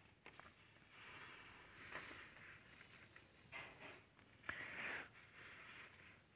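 A sheet of paper rustles as it slides.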